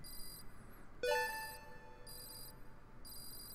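A bright electronic chime rings out and fades.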